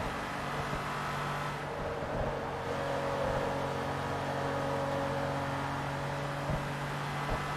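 A sports car engine roars steadily at high revs.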